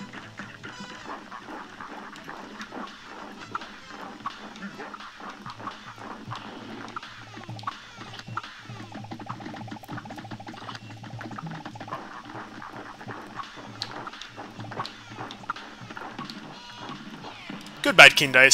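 Cartoon gunshots pop rapidly.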